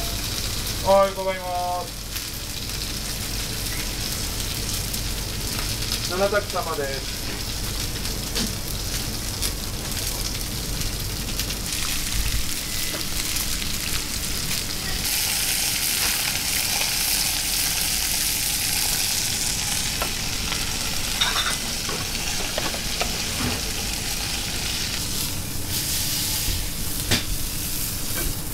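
Meat sizzles and hisses in hot pans.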